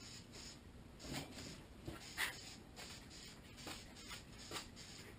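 A punching bag thuds under blows.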